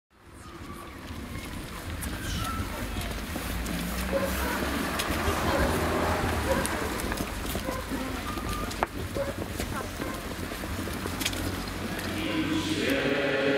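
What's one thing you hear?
Many footsteps shuffle on paving outdoors.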